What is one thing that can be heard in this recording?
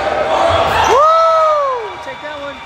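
A referee's whistle blows once.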